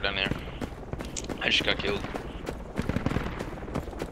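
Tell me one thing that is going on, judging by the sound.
Footsteps crunch on dry gravel at a steady walking pace.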